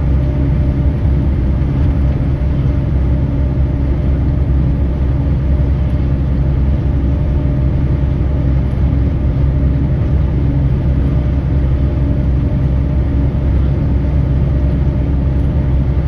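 A vehicle's engine drones steadily from inside the cab.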